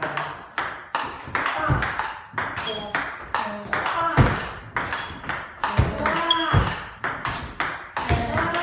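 A ping-pong ball clicks rapidly back and forth off paddles and a table in an echoing room.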